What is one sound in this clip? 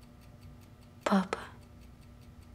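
A young woman speaks softly and nervously, close by.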